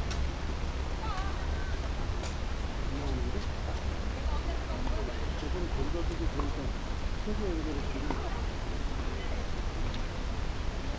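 Tennis balls are struck with rackets, with sharp pops now and then.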